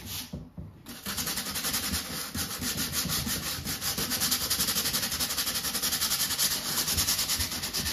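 A sanding sponge rubs quickly back and forth over wood.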